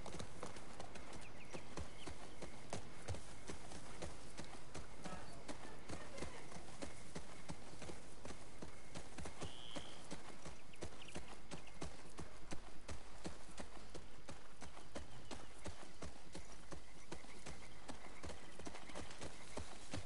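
Horse hooves thud steadily on soft forest ground.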